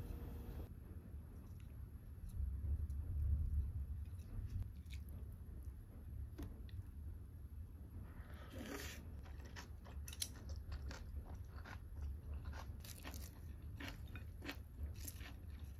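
Chopsticks tap and scrape against a ceramic bowl.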